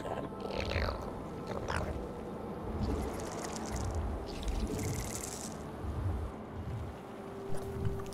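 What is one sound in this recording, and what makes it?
Game creatures screech and chitter.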